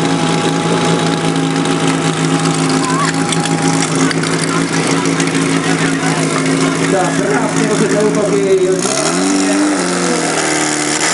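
A pump engine runs loudly nearby and revs up.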